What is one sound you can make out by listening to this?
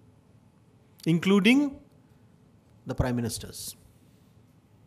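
A man speaks into a microphone in short phrases, heard through a loudspeaker.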